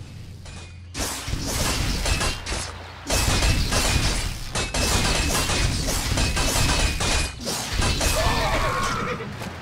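Swords and axes clash in a noisy battle.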